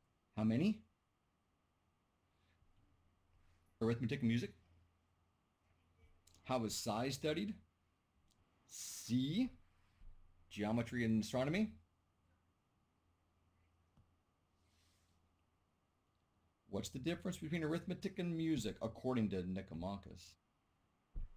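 A middle-aged man speaks calmly into a microphone, in short bursts with pauses.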